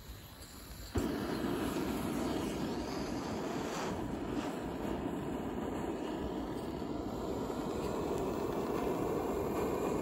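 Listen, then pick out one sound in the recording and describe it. A gas burner hisses and roars steadily.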